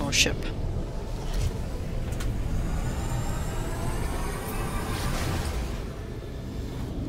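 A spaceship engine roars and rises as it climbs.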